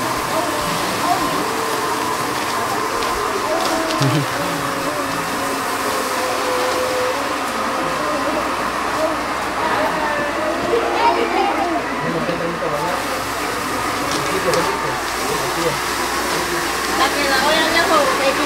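A crowd of men, women and children chatter nearby outdoors.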